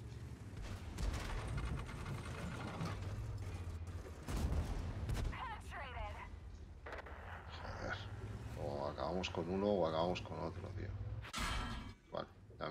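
Tank guns fire with loud booms.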